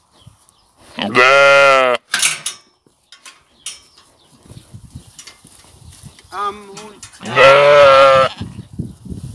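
Sheep bleat loudly nearby.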